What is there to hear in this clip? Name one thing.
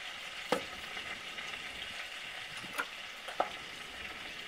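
A knife scrapes and taps on a wooden board.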